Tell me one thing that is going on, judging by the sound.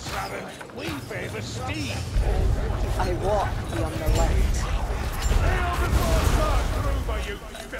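A bow twangs as arrows are loosed.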